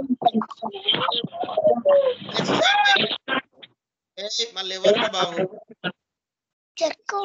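A man speaks calmly through an online call microphone, in short bursts with pauses.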